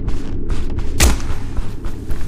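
A door bangs open.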